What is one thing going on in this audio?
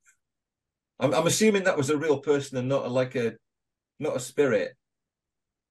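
An elderly man talks calmly through a microphone on an online call.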